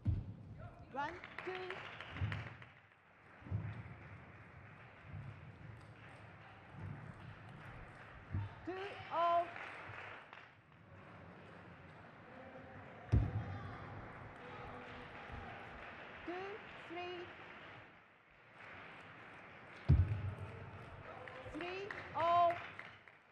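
A young woman shouts in celebration in a large echoing hall.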